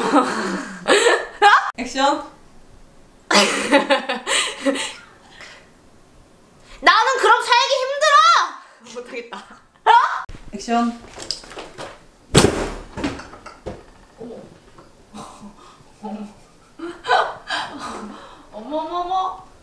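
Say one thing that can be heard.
A young woman laughs close by.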